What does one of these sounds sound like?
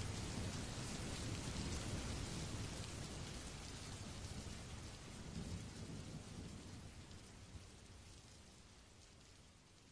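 A stream flows gently and slowly fades away.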